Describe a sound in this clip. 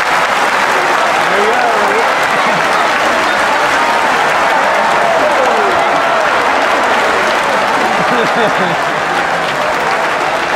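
A large crowd cheers and chatters loudly in a big echoing hall.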